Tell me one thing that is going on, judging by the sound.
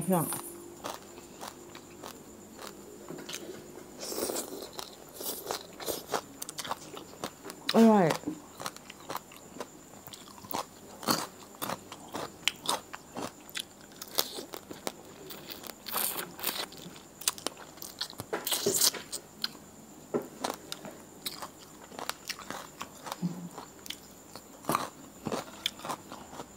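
A woman chews and crunches food close to the microphone, with wet smacking sounds.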